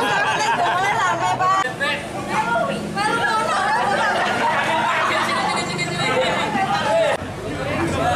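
A crowd of people chatters and cheers around.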